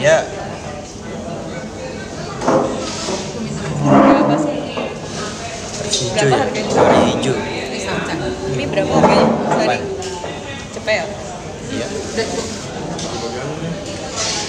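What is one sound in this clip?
A young man talks casually and close by.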